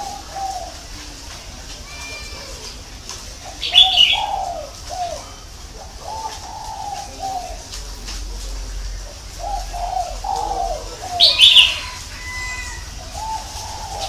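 A caged bird sings short, warbling phrases close by.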